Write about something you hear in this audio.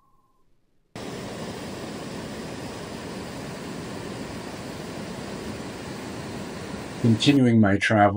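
A river rushes over rocks.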